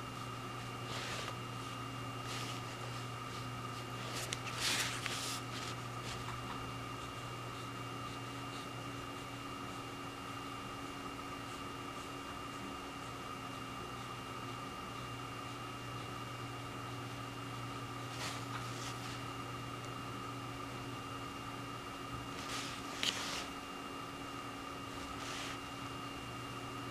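A brush softly scratches and taps on paper.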